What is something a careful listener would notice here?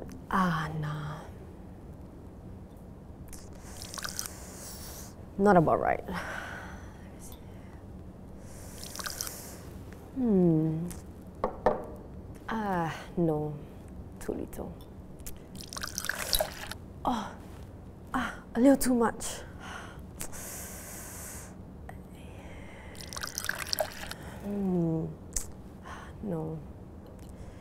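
A young woman speaks to herself in short, musing phrases, close by.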